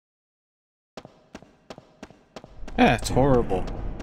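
Footsteps run quickly across a stone floor.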